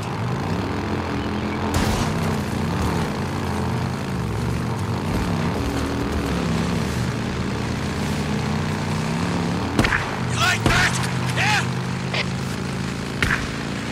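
A motorcycle engine hums and revs up and down as it rides along.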